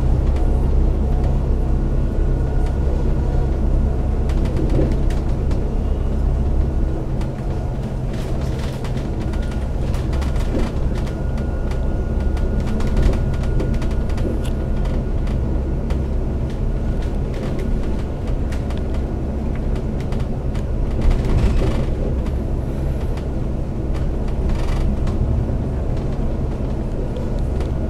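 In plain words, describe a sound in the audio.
A vehicle's engine drones steadily while driving along a highway.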